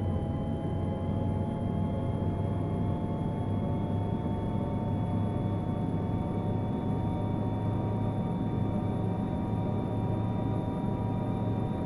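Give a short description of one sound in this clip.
A bus engine drones steadily, its pitch rising slowly.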